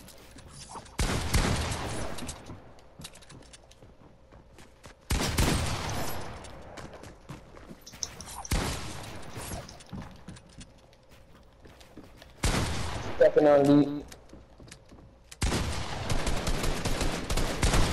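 Wooden building pieces snap into place in quick bursts.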